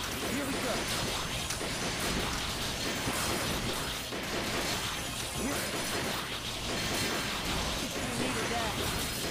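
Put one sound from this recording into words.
Small explosions pop and burst.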